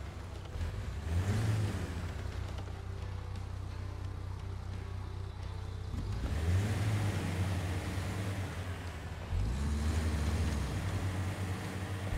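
An off-road truck engine rumbles and revs in bursts as it climbs over rocks.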